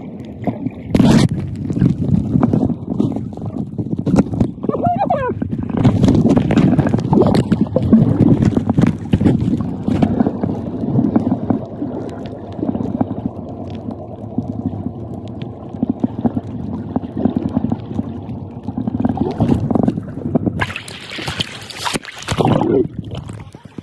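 Water splashes at the surface.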